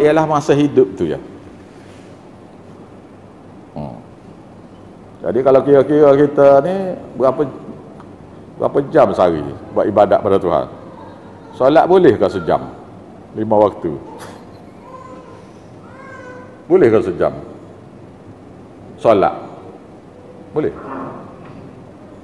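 An elderly man speaks slowly into a close microphone, in short bursts with pauses.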